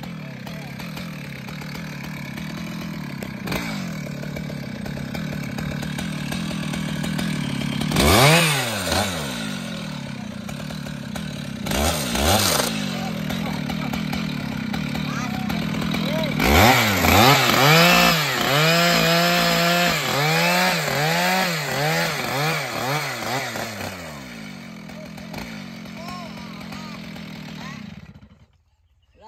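A chainsaw engine idles steadily outdoors.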